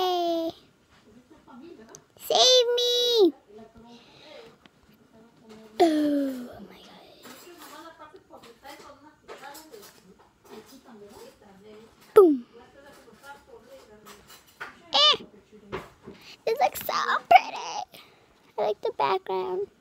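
A young girl talks and squeals playfully close to a phone microphone.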